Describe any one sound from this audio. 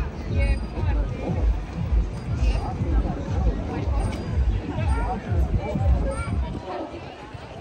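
Stroller wheels rumble over pavement.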